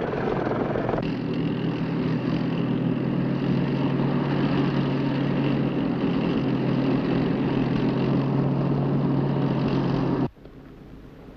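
A truck engine rumbles steadily as the vehicle drives closer over rough ground.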